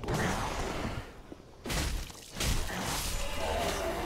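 Metal blades clash and strike in a fight.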